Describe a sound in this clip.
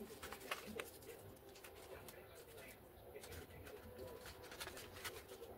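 Masking tape rustles and crackles as it is pulled and pressed down by hand.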